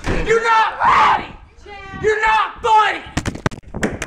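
A young man shouts loudly close by.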